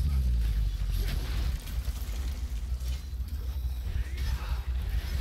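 A sword slashes with a sharp whoosh.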